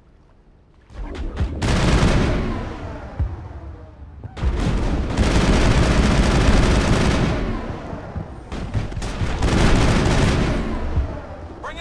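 A loud energy blast roars and crackles.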